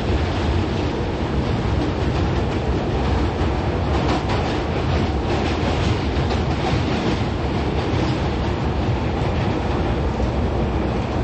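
A train rumbles and roars steadily through a tunnel.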